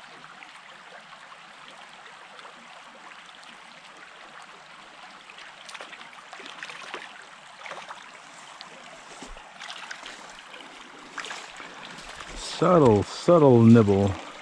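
A small stream trickles gently over stones.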